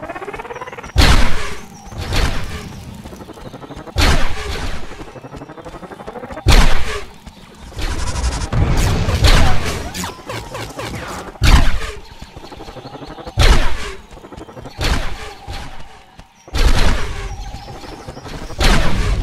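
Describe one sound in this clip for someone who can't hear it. A gun fires in loud, sharp bursts every few seconds.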